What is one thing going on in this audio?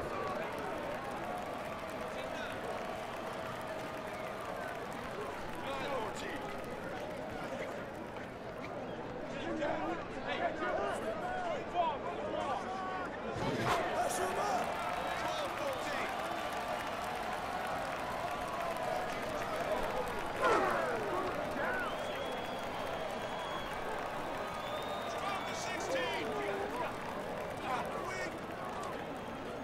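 A crowd murmurs and cheers steadily.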